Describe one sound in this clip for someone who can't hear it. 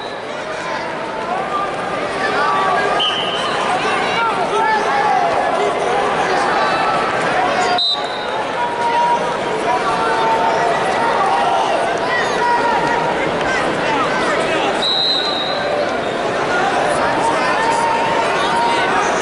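A crowd of spectators shouts encouragement in a large echoing arena.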